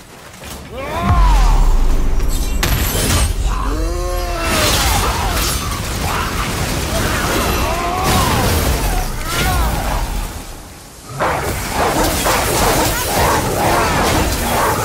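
Heavy blows and explosions boom and crash in a fight.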